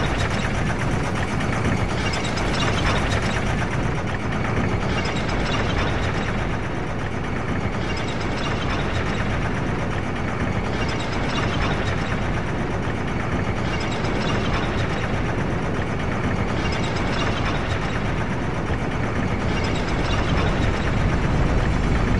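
A metal cage lift rumbles and creaks as it descends.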